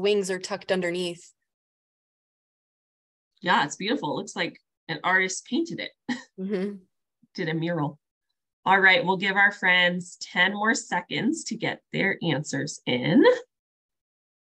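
A young woman speaks calmly over an online call, in short phrases with pauses.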